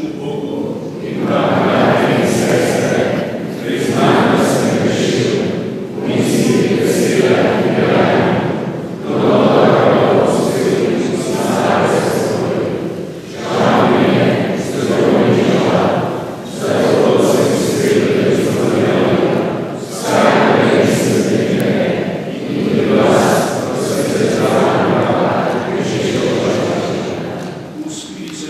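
An elderly man chants a prayer into a microphone in a large echoing hall.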